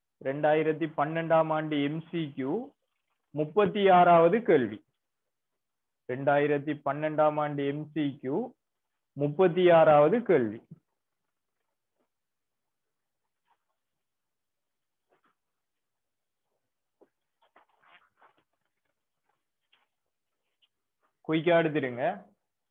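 A young man speaks calmly and clearly into a close microphone, with pauses.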